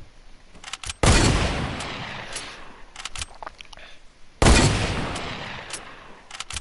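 Gunshots crack loudly and echo away.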